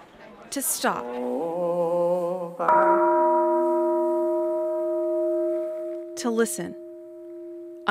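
A group of monks chants together in a low, steady drone in a large hall.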